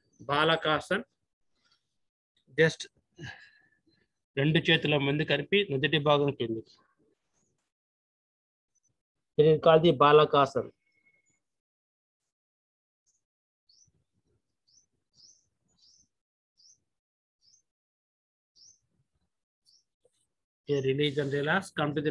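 An elderly man speaks calmly, close by, with pauses in between.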